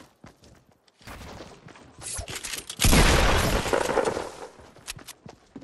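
Wooden walls are built with loud clattering thuds.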